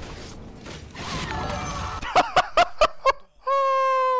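A young man laughs and shouts loudly into a microphone.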